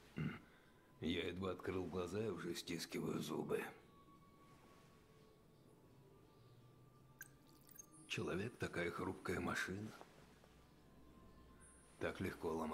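An elderly man speaks in a weary, hoarse voice.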